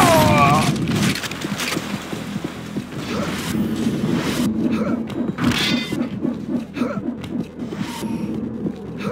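Footsteps clank rhythmically on a metal grating.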